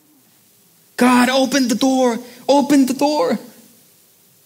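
A young man speaks with animation through a microphone.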